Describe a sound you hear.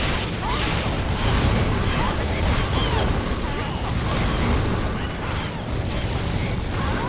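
Weapons clash and strike in a fast fight.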